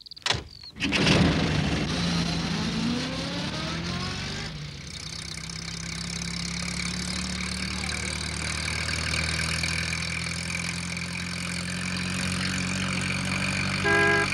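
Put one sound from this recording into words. A small van's engine runs as the van drives away.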